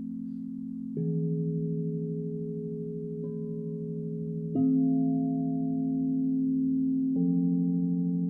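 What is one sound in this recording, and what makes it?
Mallets strike crystal singing bowls, each stroke adding a new ringing tone.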